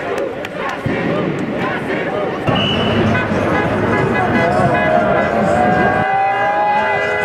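Many footsteps shuffle on pavement as a crowd marches.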